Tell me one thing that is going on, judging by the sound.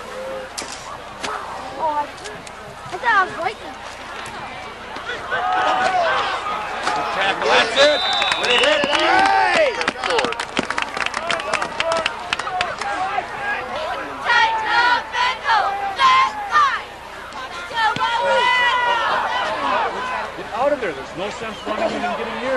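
Several young men shout and call out nearby.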